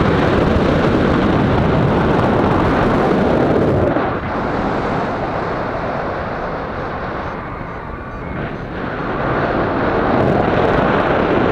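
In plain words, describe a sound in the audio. Strong wind rushes and buffets loudly, rising and falling.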